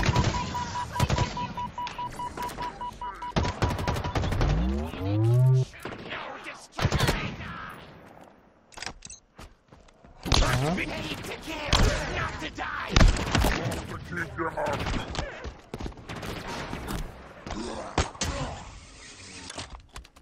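Rapid gunfire rattles and bangs in a video game.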